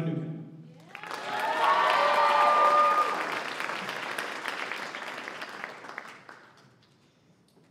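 A crowd claps and cheers loudly, then fades.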